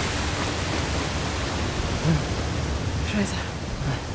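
A waterfall rushes and splashes nearby.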